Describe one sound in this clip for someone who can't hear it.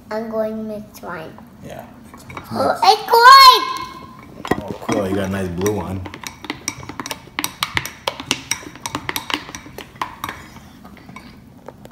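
Spoons scrape and tap in bowls of sticky goo.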